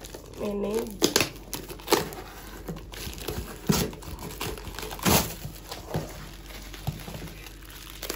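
A cardboard box is torn open with sharp rips and thumps.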